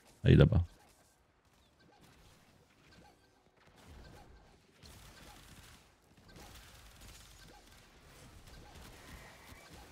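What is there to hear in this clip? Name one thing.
Blades slash and clash in a fast fight.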